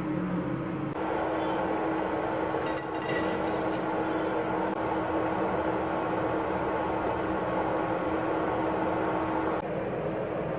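Water bubbles and simmers in a pan.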